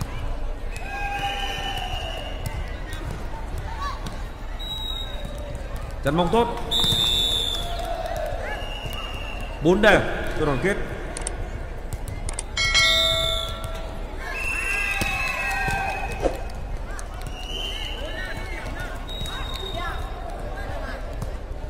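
A volleyball is struck with dull thuds.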